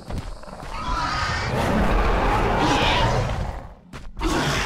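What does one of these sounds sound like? A large beast roars loudly and deeply.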